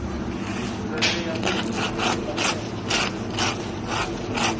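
Fingers tap on a hard stone counter.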